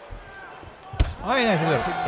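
A kick lands on a body with a sharp slap.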